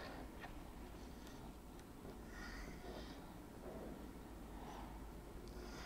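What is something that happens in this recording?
Small tiles slide and click softly on a tabletop.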